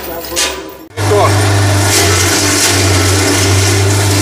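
A machine roars loudly as it shreds dry stalks.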